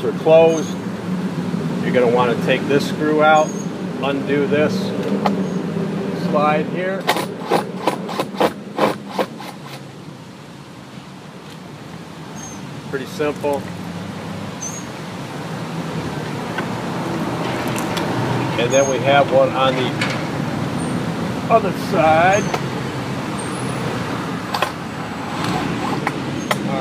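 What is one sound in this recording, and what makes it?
A man talks calmly.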